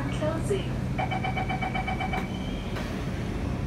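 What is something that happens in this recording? A metro train's door warning chime beeps.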